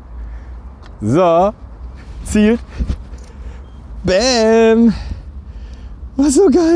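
A man speaks in short phrases close by, outdoors.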